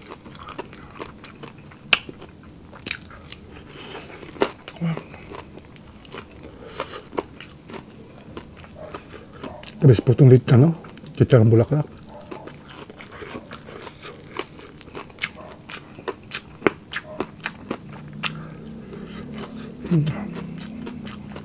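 A man chews crunchy food loudly and close up.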